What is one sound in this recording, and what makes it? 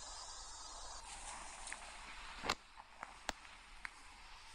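Wind rushes past during a parachute descent.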